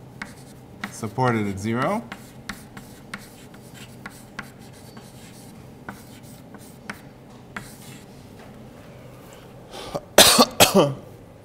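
A man speaks in a lecturing voice, with short pauses.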